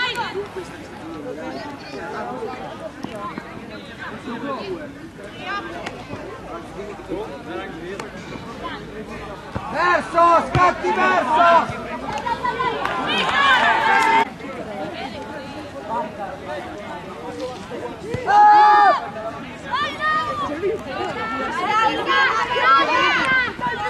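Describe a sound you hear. Young men and women shout and call out across an open field outdoors.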